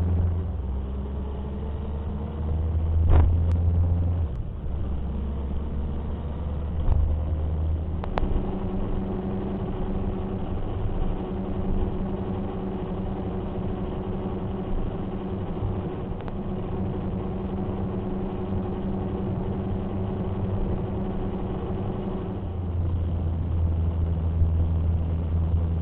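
Wind rushes past while driving.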